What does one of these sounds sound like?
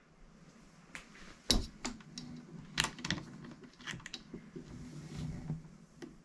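Small plastic parts click and tap on a table.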